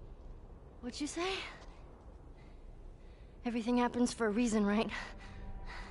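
A young woman speaks softly and weakly.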